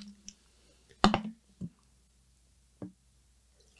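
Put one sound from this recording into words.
Glass clinks against glass.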